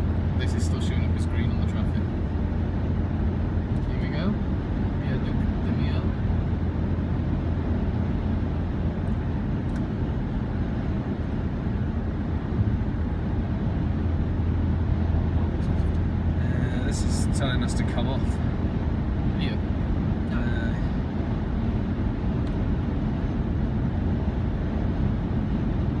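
A car's engine hums steadily as it drives fast along a highway.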